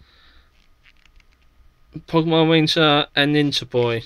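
Trading cards slide against each other as they are flicked through.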